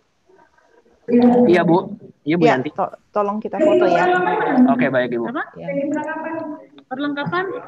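A person speaks loudly over an online call.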